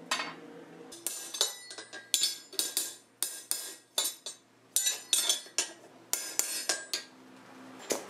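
A hammer rings sharply on a metal anvil in quick, repeated blows.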